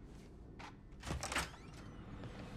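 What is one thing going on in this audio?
A heavy metal door swings open.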